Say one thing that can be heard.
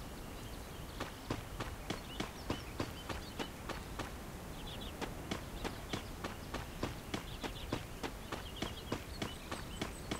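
Quick footsteps patter across grass.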